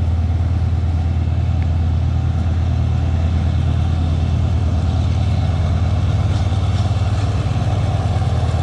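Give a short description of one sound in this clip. A diesel locomotive engine rumbles loudly and steadily close by.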